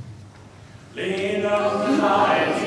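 A crowd of people begins to sing together.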